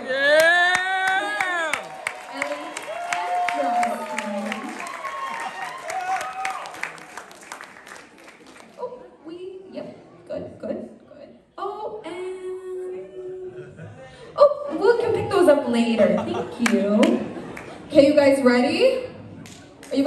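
A young girl sings through a microphone in a large hall.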